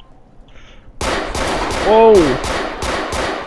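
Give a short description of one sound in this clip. Pistol shots crack in rapid bursts.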